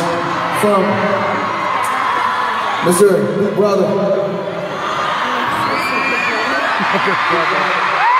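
A large crowd cheers and screams throughout a big echoing arena.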